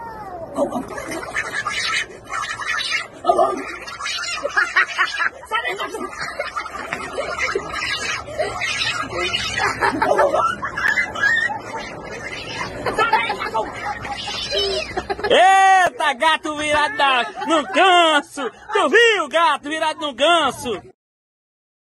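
A young boy sobs and cries close by.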